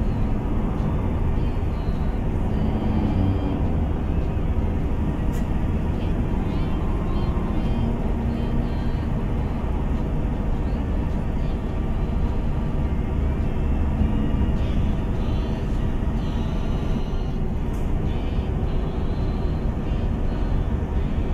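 A heavy truck engine rumbles steadily as the truck drives along.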